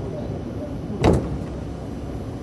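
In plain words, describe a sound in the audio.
A train's sliding doors open with a thud.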